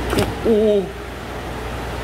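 Water splashes as a large fish thrashes at the surface.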